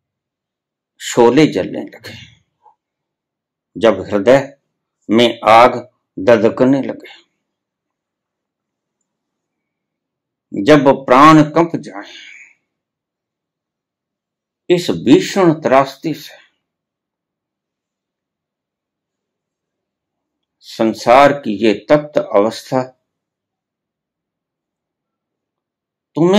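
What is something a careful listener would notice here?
An elderly man speaks calmly and close by, in short phrases with long pauses.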